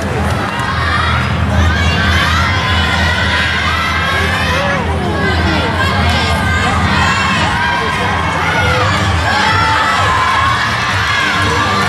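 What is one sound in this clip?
Many voices call out and cheer with high pitch.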